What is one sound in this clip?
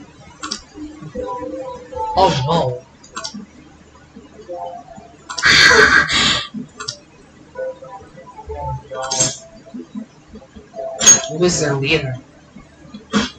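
A young man talks quietly now and then.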